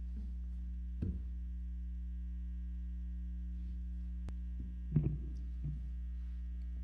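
An electric guitar is struck in a few short bursts.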